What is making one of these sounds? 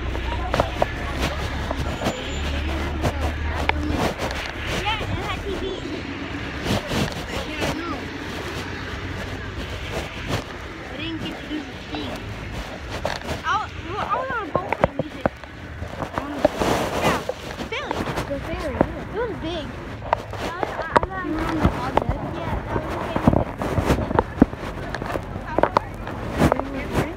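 Men and women talk at once in a crowd outdoors, heard from close by.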